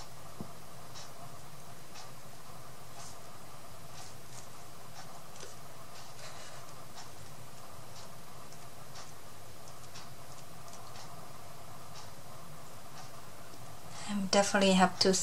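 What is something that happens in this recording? A paintbrush brushes softly across card.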